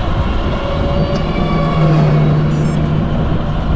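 A car drives past in the other direction.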